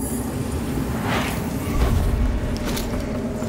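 Crackling energy surges with a sharp whoosh and a deep thump.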